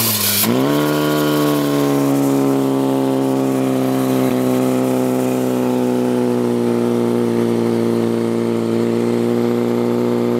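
A portable fire pump engine revs up and roars at full throttle.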